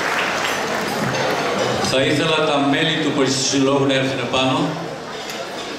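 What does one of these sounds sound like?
An older man speaks calmly into a microphone in an echoing hall.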